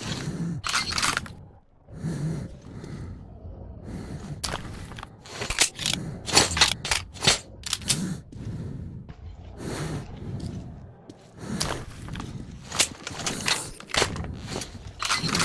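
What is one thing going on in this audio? Metal clicks and clacks as a rifle is reloaded.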